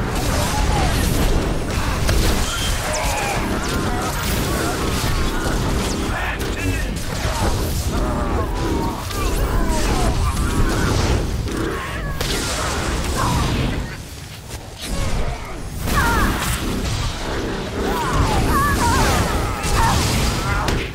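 Energy weapons zap and hum repeatedly.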